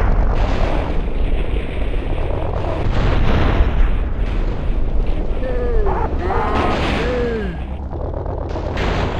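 Car metal crashes and clanks as vehicles tumble.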